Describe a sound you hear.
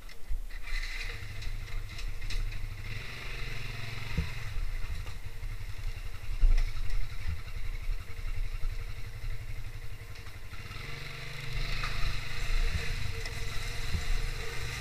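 A motorcycle engine runs as the motorcycle rides along.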